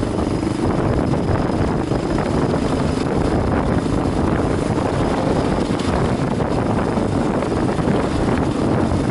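A motorcycle engine hums steadily close by as it rides along.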